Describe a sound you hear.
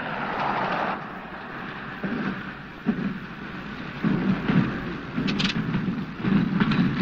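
A plane engine idles and sputters on the ground.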